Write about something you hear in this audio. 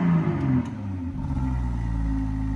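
A car engine starts up.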